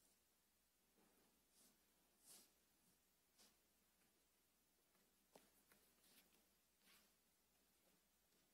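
Small objects knock and clink softly on a table.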